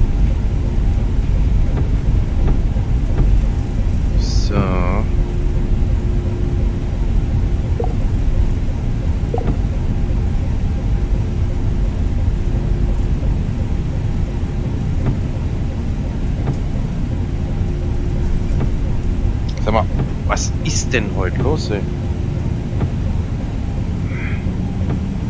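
Windscreen wipers sweep back and forth.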